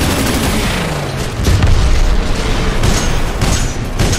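Explosions boom with deep rumbling.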